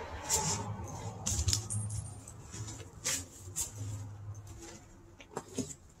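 A nylon bag rustles as a man pulls it open.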